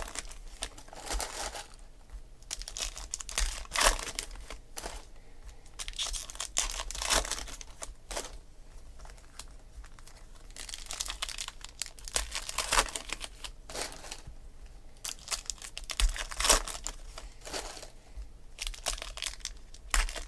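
Foil card packs crinkle and tear open close by.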